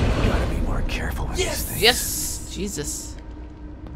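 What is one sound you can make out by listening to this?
A man speaks a short line calmly.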